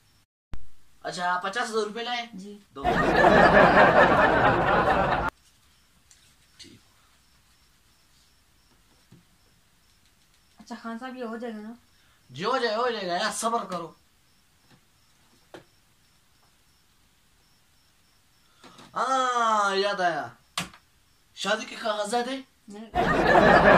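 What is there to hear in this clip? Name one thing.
A young man speaks close by with animated, sing-song phrases.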